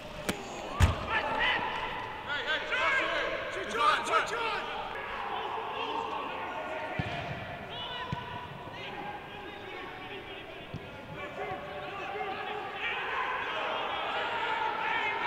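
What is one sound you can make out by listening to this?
Men shout to each other across a large, empty, echoing stadium.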